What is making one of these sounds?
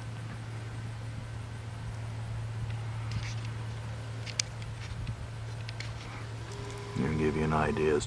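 A harvesting machine's engine drones steadily in the distance.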